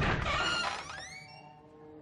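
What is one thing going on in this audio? A glass door swings open.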